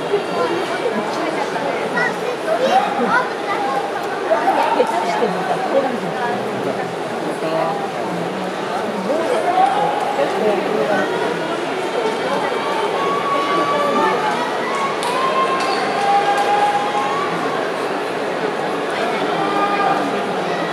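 A large indoor crowd murmurs and chatters throughout.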